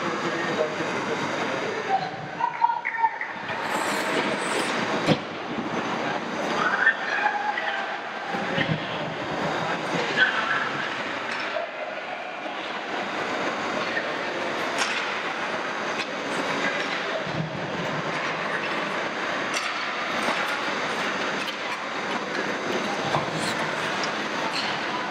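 Spectators chatter and call out in an echoing indoor rink.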